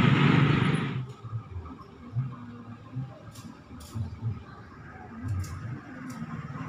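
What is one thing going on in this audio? A distant locomotive hums as it approaches.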